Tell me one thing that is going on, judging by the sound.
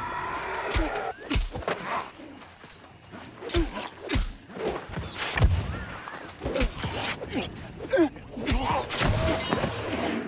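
Magic spells burst with crackling whooshes.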